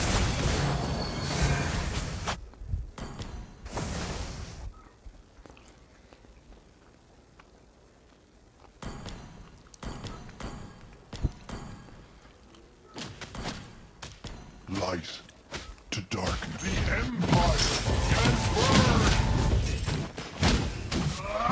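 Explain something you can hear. Fantasy battle sound effects clash and burst loudly.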